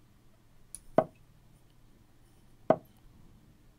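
Short digital clicks sound as chess moves are played.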